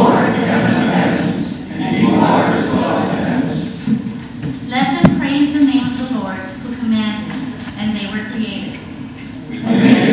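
A woman speaks calmly into a microphone in a reverberant hall.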